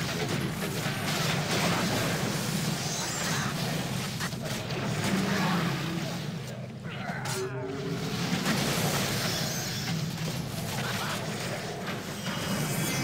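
Swords clash and magic bursts in a game fight.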